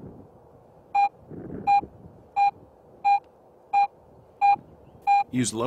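A metal detector beeps in a steady run of short, even tones.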